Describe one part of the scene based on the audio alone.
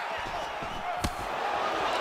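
A kick lands with a sharp thud.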